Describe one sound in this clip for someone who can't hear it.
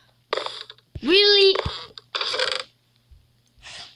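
A wooden chest creaks open.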